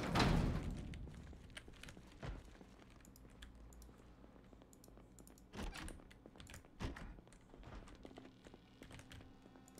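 Footsteps tread slowly across a floor.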